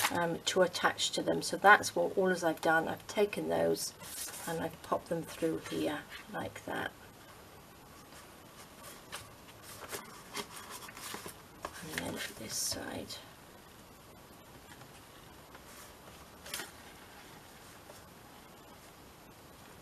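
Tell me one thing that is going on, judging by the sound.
Paper and string rustle softly as they are handled.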